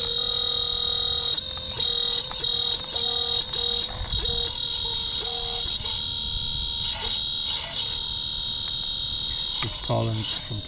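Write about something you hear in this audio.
A small electric motor whines in pulses as a model excavator moves its arm.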